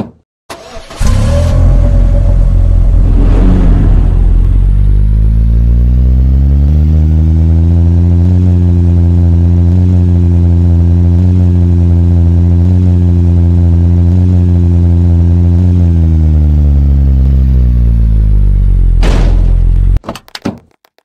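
A truck engine revs up, drones steadily, then winds down.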